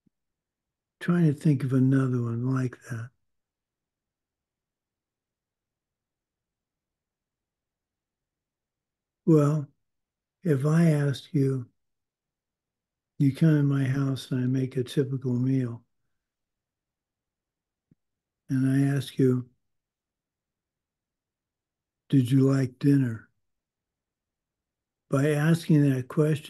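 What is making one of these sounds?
An older man speaks calmly and haltingly through an online call, with long pauses.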